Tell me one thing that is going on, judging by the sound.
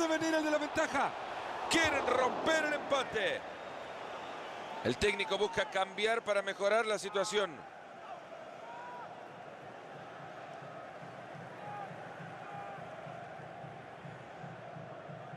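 A large stadium crowd murmurs steadily in the background.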